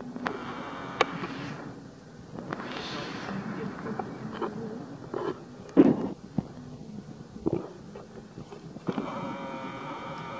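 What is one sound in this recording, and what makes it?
A baby monkey squeaks and whimpers close by.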